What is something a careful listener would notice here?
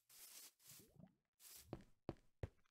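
Water splashes and trickles nearby.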